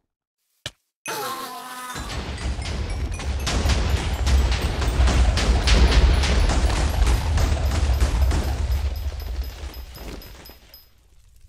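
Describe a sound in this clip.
Fireworks burst and crackle loudly, then slowly fade.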